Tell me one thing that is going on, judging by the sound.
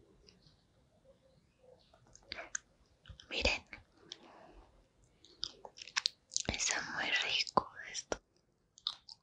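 A woman squeezes a gummy candy between her fingers with a faint sticky squish.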